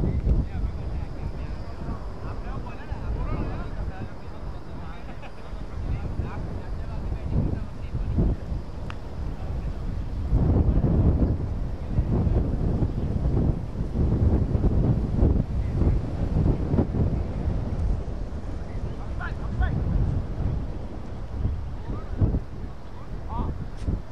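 Men call out faintly in the distance.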